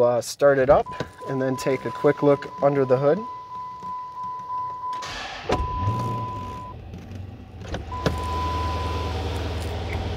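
A car's warning chime sounds in a steady tone, then in short beeps.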